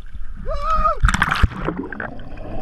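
A man jumps into the water with a big splash.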